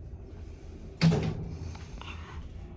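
Elevator doors slide shut with a heavy thud.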